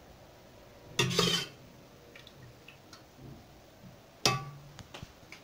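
A metal spoon scrapes and clinks on a ceramic plate.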